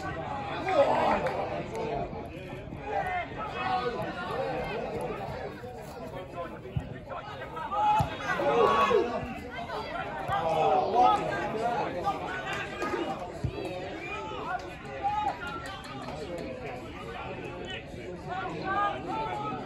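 Players shout to each other outdoors across an open field.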